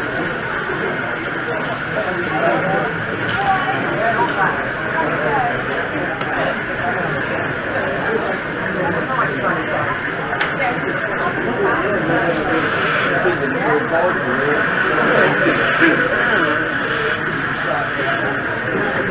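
A crowd of visitors chatters all around in a busy echoing hall.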